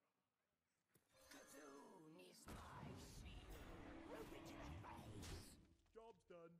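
A game spell bursts with a loud whooshing crackle.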